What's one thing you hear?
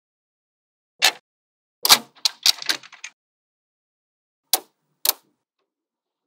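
Small magnetic balls click and clack together as they are moved.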